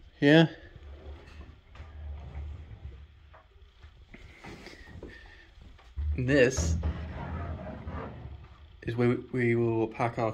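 A wooden cupboard door slides open.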